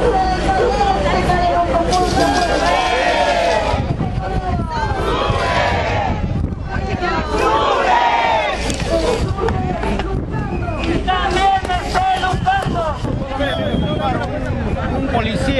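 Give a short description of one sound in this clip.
A crowd of people chatters and chants outdoors.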